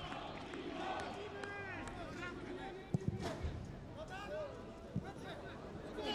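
Men shout across an outdoor football pitch.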